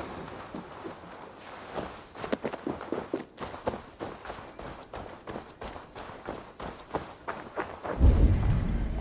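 Footsteps crunch over dry grass and dirt.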